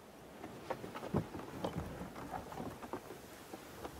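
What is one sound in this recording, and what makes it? A heavy chest thumps down onto a wooden deck.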